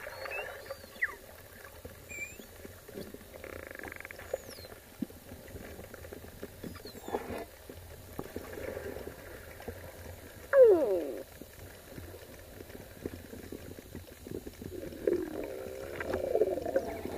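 Pilot whales whistle and squeal underwater.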